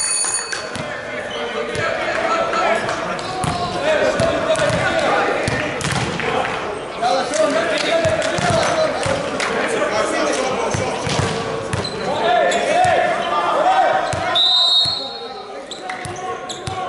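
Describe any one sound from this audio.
Sneakers squeak on the hard court.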